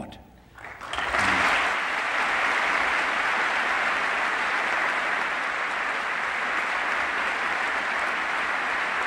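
A large crowd applauds loudly and steadily.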